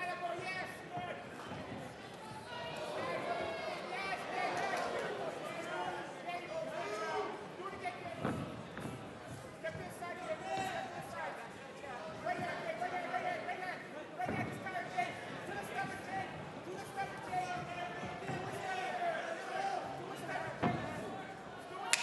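A crowd shouts and cheers loudly.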